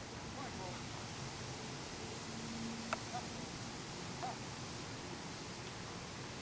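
A dog sniffs and snuffles at the ground.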